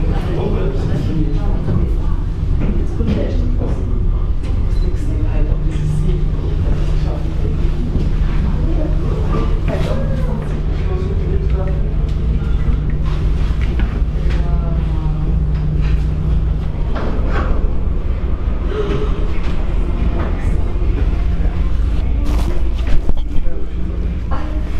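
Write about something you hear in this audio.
A cable car cabin hums steadily as it glides along its cables.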